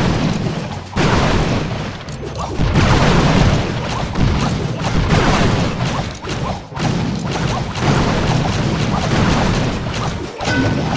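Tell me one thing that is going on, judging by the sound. Cartoonish battle sounds crash and thud steadily.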